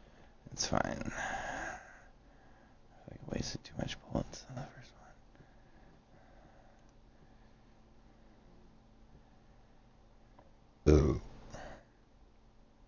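A young man talks into a microphone in short, animated bursts.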